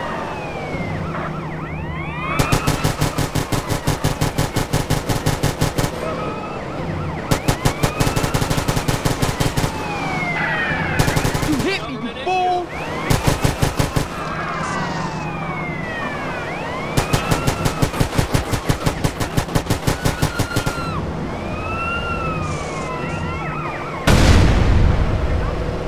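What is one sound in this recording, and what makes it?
A car engine roars steadily at speed.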